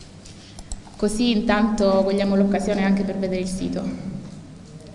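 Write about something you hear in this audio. A young woman speaks calmly into a microphone.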